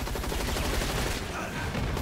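An automatic rifle fires.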